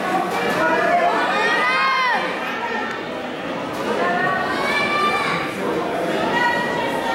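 Young children shout sharply as they spar.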